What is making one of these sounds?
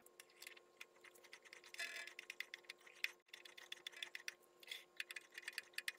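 A chuck key clicks and rattles against metal.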